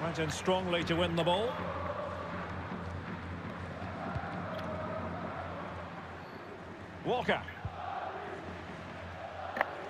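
A large stadium crowd murmurs and cheers steadily.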